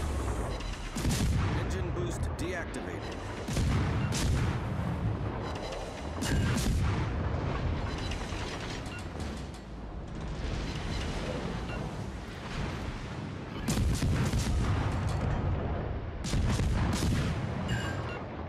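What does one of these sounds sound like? Shells explode and splash into water.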